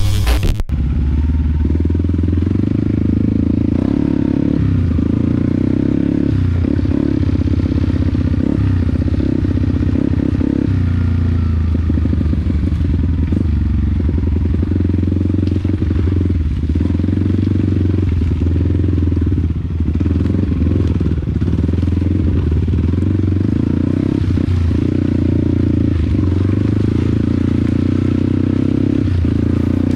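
Tyres rumble and bump over a rough muddy trail.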